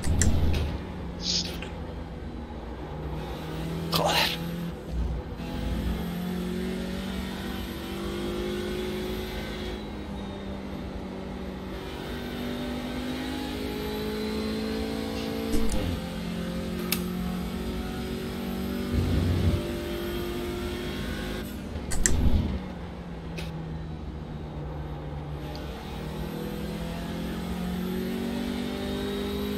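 A racing car engine roars and revs up and down through the gears.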